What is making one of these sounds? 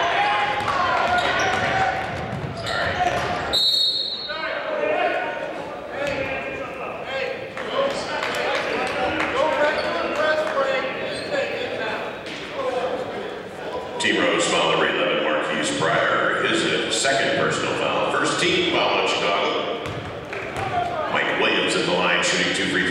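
A crowd of spectators chatters and cheers in an echoing gym.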